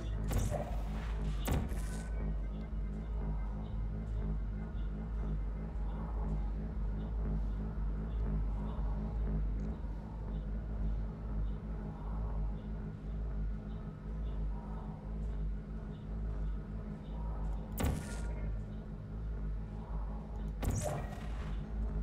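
A portal gun fires with a sharp, bright zap.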